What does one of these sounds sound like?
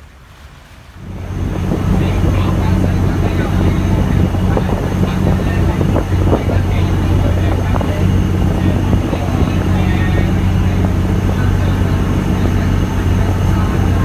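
A boat engine drones steadily and loudly.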